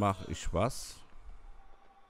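A magic spell bursts with a bright shimmering whoosh.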